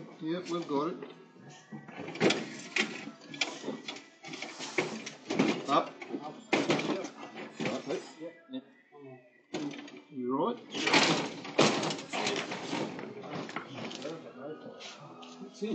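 Several men talk loudly and over one another nearby.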